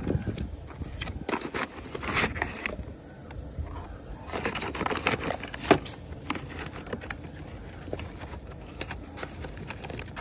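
Cardboard boxes rustle and scrape as they are handled.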